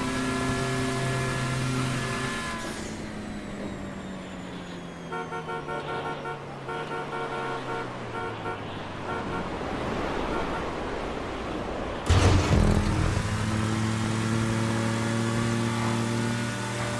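A car engine roars at high revs, drops away, then revs up again.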